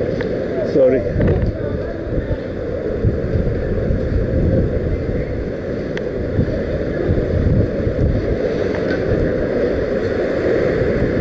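Wind rumbles steadily against a microphone while moving along a street.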